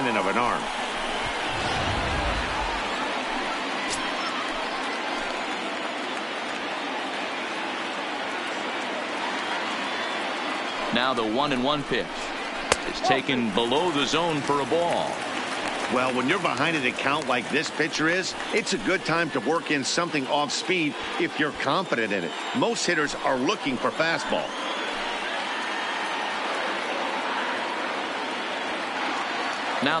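A large crowd murmurs steadily in a big open stadium.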